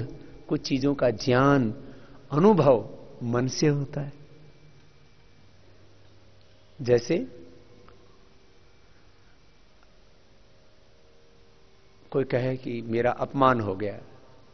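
A man speaks calmly into a microphone, with long pauses.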